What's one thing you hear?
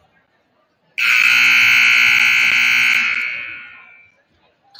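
A loud buzzer blares in an echoing gym.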